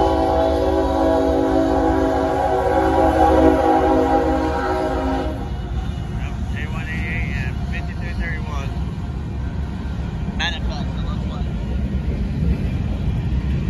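A freight train rumbles along the tracks.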